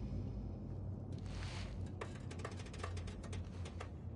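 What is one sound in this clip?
Footsteps splash softly on a wet floor.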